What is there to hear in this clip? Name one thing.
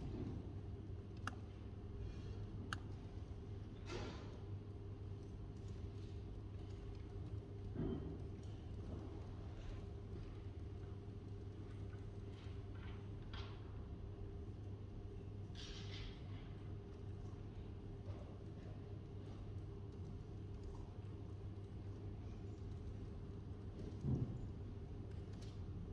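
Laptop keys click now and then under light typing.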